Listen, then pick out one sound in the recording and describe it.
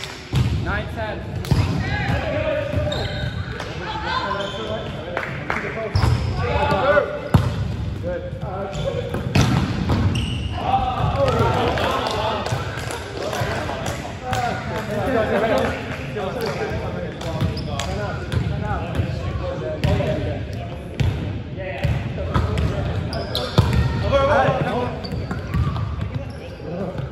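Sneakers squeak and thud on a wooden floor.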